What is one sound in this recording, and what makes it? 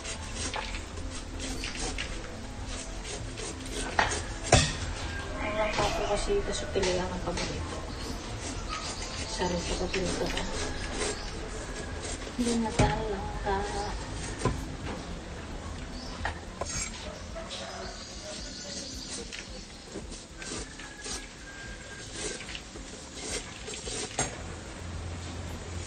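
A machete chops into a coconut husk with sharp thuds.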